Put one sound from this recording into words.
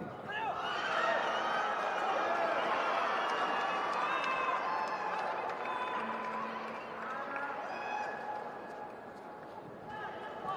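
A large crowd cheers loudly in a big echoing hall, then quiets.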